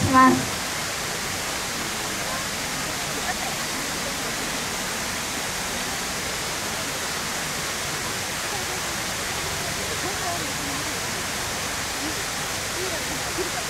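Water pours steadily down a nearby cascade.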